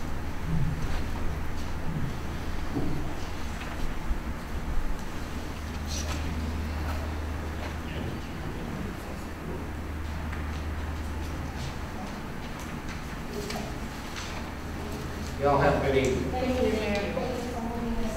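Several adults murmur quietly in a room with some echo.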